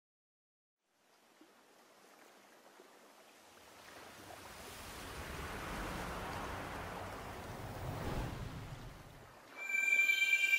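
Water laps and swishes gently.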